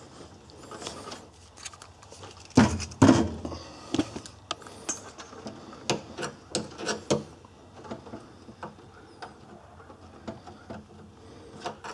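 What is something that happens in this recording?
Wires rustle and tap as they are handled close by.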